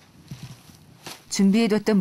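A hand rustles through dry grain stalks.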